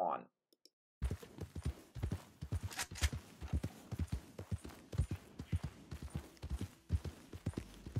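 A horse's hooves thud on soft ground at a steady walk.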